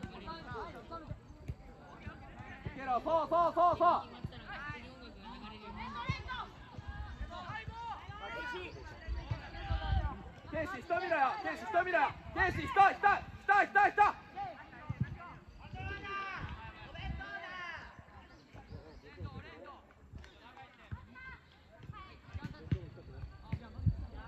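Players shout to each other across an outdoor football pitch.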